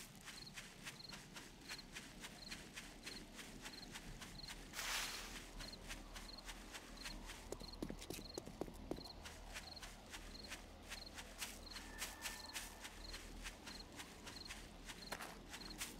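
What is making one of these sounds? Footsteps crunch steadily through grass and undergrowth.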